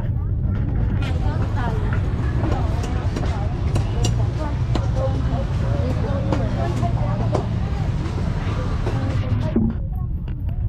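A crowd of men and women chatter nearby, outdoors.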